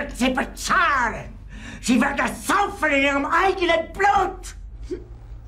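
A middle-aged man shouts angrily close by.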